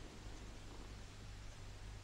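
A pen scratches on paper.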